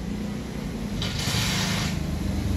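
A glass cabinet door slides open with a scrape.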